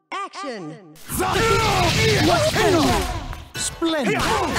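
Blows and slashing strikes clash loudly in a fast flurry.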